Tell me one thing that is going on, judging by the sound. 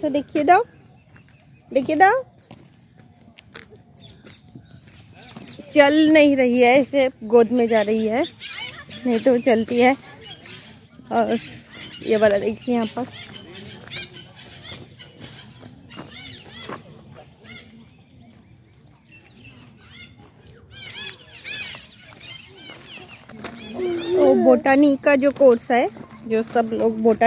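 A toddler babbles.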